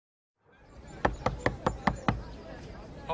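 A man knocks sharply on a wooden door several times.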